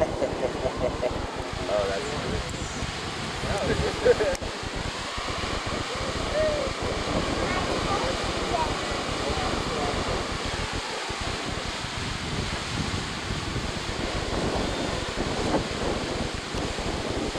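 A geyser hisses and roars as steam vents steadily.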